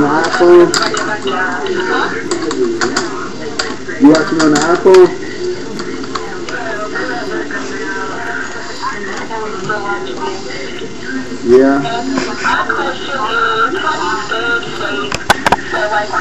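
A man talks casually over an online call, heard through a small speaker.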